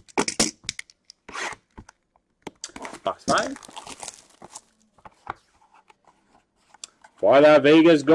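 Hands rustle and tear open a crinkly foil card pack.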